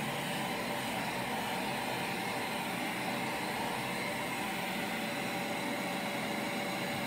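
A handheld vacuum cleaner hums steadily close by.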